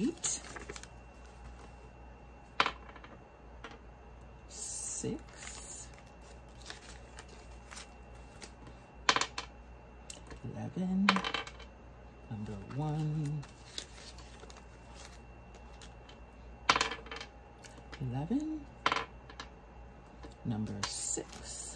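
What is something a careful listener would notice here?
Paper bills crinkle as they are handled.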